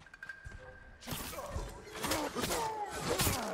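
Swords clash and ring loudly.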